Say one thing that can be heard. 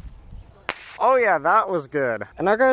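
A firework whistles shrilly, rising and falling in pitch.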